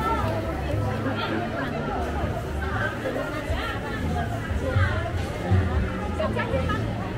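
Many people chatter nearby in a busy outdoor crowd.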